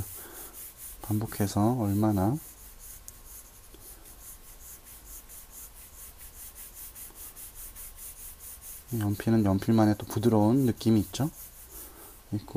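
A pencil scratches rapidly back and forth on paper.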